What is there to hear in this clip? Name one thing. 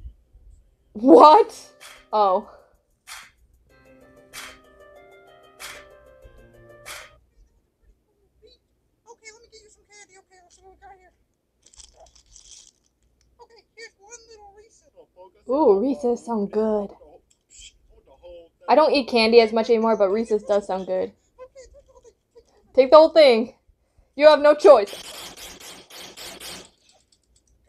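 A young woman talks with animation through a webcam microphone.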